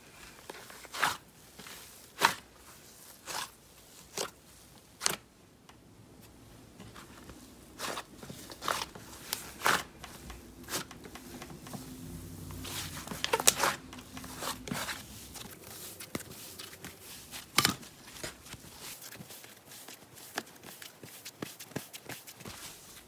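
Slime squelches and pops as hands squeeze and knead it.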